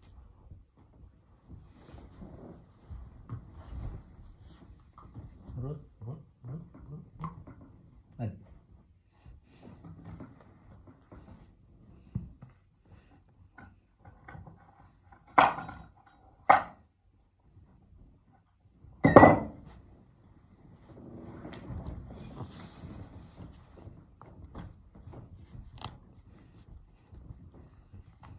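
A man talks softly and playfully up close.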